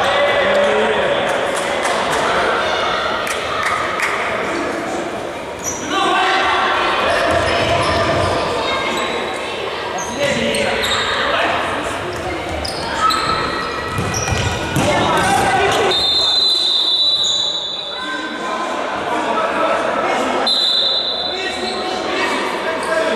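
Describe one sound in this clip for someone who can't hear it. Men shout and call out in a large echoing hall.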